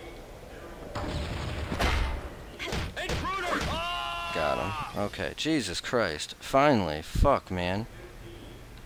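Blows thud and clang in a brief fight.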